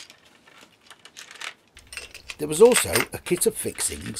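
Small metal pieces rattle in a plastic box.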